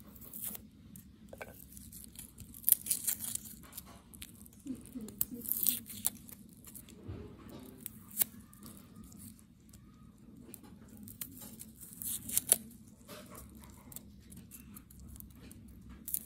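Dry garlic skins rustle and crinkle between fingers.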